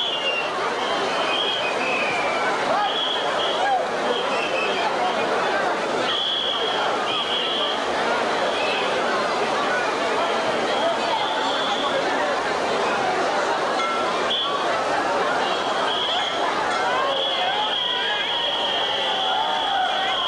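A large steel drum band plays a lively tune, loud and full.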